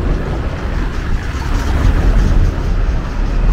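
A car engine hums as it drives slowly past.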